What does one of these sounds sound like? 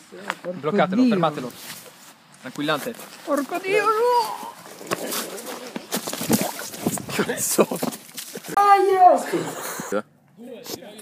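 Young men shout and talk excitedly close by.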